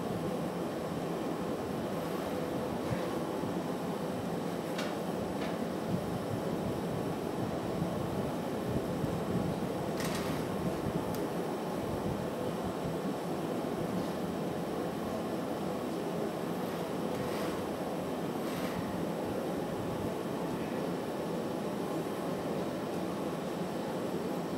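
A furnace roars steadily.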